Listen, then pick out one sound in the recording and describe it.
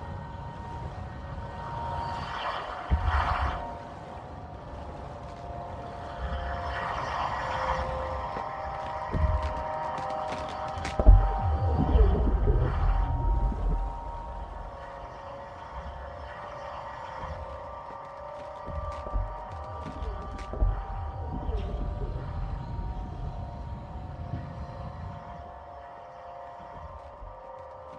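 A small submersible's motor hums and whirs deep underwater.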